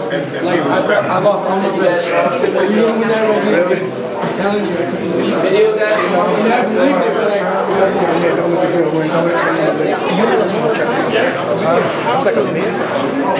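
Several men talk and laugh in a noisy crowd around.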